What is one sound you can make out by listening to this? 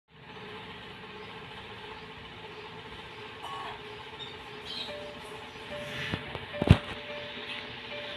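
An old television hisses softly with a steady hum.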